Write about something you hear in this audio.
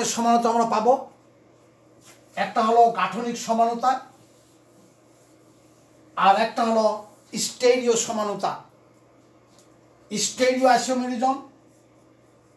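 A man speaks calmly and clearly in short bursts, close by.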